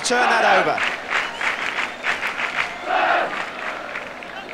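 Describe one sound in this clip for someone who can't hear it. A large crowd claps in rhythm.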